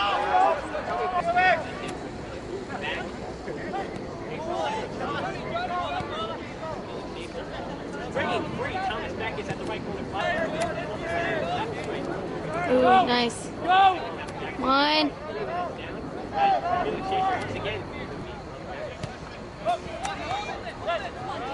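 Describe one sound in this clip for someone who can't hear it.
Young men shout and call out across an open sports field.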